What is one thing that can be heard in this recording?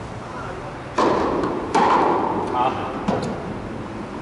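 A tennis ball bounces several times on a hard court in a large echoing hall.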